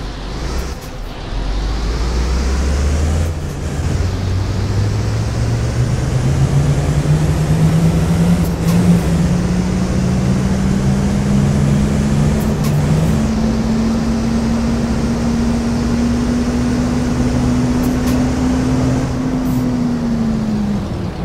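A bus engine hums and rises in pitch as the bus speeds up.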